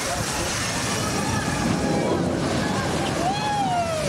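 A boat splashes down into water with a loud rush.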